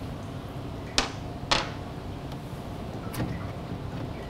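Metal parts click softly as they are fitted together by hand.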